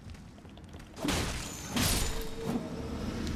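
Crystal shatters loudly with a sharp crash.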